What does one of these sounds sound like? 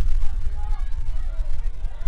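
A crowd cheers in the stands.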